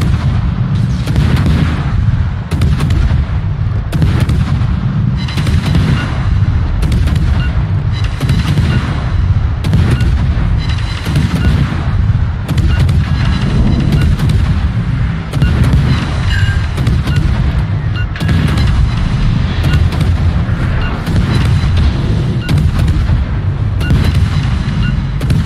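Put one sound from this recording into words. Heavy guns fire in repeated booming blasts.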